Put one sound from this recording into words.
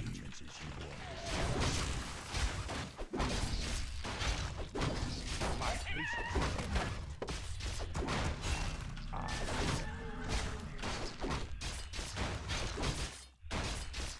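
Game battle sounds clash and crackle.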